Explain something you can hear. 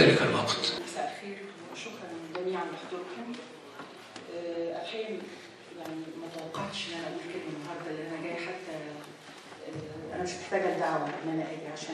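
A middle-aged woman speaks calmly into a microphone, heard through loudspeakers in a large hall.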